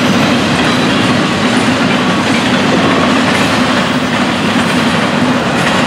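A freight train rumbles and clatters loudly past close by.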